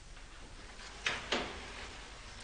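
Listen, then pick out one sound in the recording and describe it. A door shuts with a knock.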